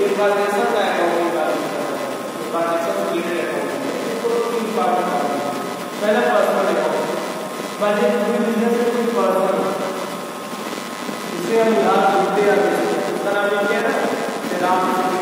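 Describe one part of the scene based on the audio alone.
A young man lectures steadily through a clip-on microphone, in a slightly echoing room.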